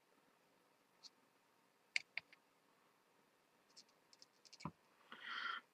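Small metal tools tap and click against a circuit board.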